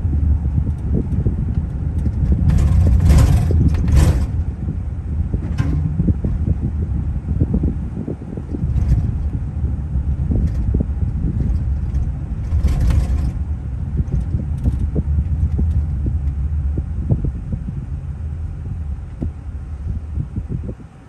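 A car's engine rumbles low and steady from inside the car as it drives along a street.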